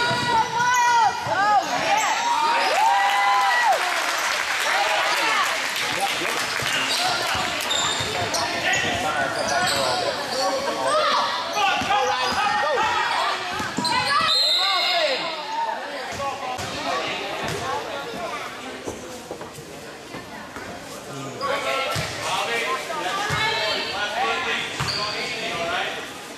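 Spectators cheer and shout in an echoing gym.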